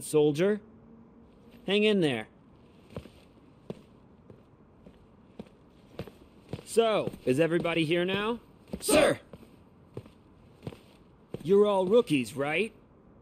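A young man speaks calmly and confidently.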